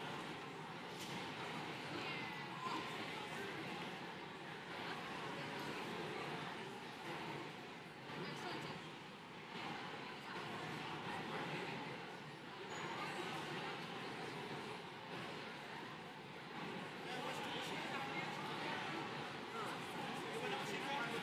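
A large crowd chatters steadily in a big echoing hall.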